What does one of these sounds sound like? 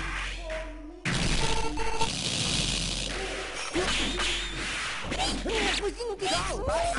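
Sharp hits, slashes and explosive bursts clash rapidly.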